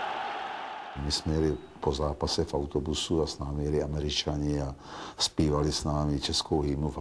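An older man speaks calmly and close up.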